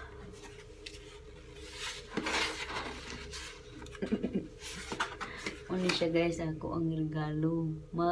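A cardboard box rustles as it is handled.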